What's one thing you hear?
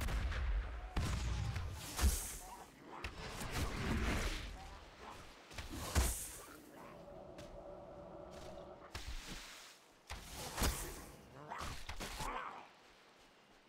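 Magic spells whoosh and burst in short blasts.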